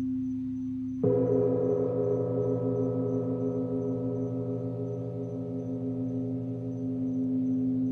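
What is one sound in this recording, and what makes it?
A second gong is struck and rings out with a rich, sustained tone.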